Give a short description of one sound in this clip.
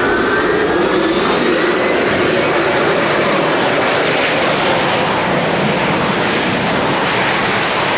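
A jet airliner roars loudly as it accelerates down a runway.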